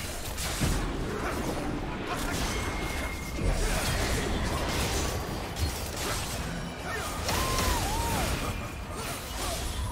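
Magic spells whoosh, crackle and burst during a fight.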